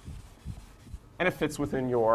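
A man taps chalk on a blackboard.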